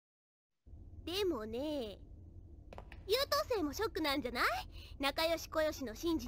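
A young girl speaks with a teasing, mocking tone.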